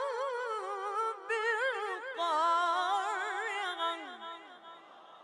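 A boy chants in a long, wavering melody through a microphone, with the voice echoing and fading afterwards.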